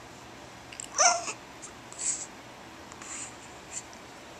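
A baby coos and squeals close by.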